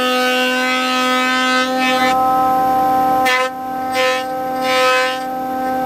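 Wood feeds through a planer with a loud rushing cut.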